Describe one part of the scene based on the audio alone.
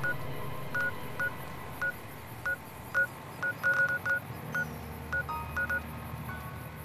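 An electronic device gives short, quick beeps.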